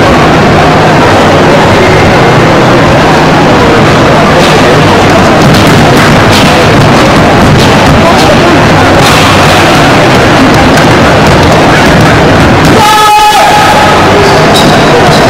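A crowd murmurs steadily in a large echoing hall.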